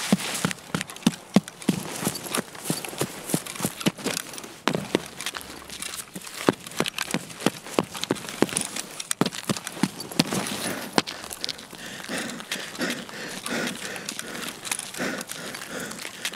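Footsteps crunch quickly on gravel and hard ground.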